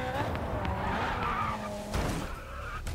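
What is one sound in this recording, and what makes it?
Car tyres screech in a skid.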